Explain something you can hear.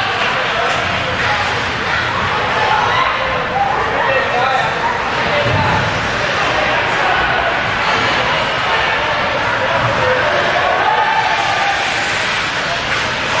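A crowd murmurs and chatters in a large echoing rink.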